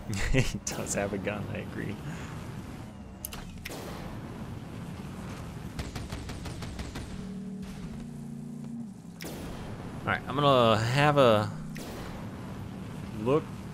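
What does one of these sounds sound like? Guns fire in rapid bursts.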